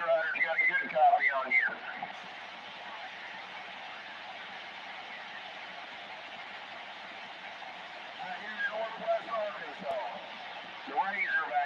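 A radio receiver hisses with steady static through its loudspeaker.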